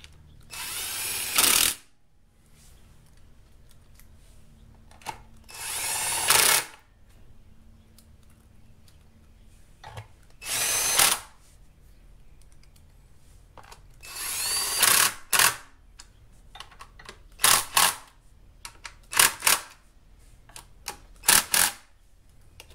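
A cordless drill whirs in short bursts, driving out screws.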